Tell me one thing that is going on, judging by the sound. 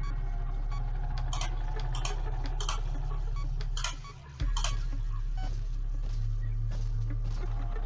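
Switches click one after another.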